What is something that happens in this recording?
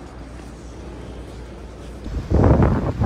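A suitcase rolls along a hard floor.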